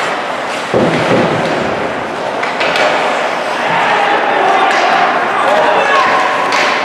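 Hockey sticks clack against the puck.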